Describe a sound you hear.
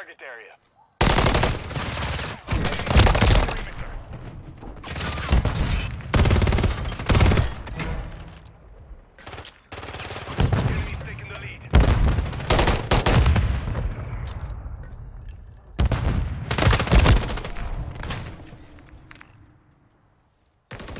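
Rifles fire in loud, rapid bursts with echoing shots.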